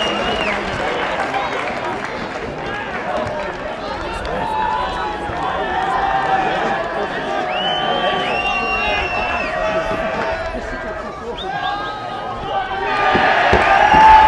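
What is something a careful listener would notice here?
A crowd of spectators murmurs and calls out outdoors.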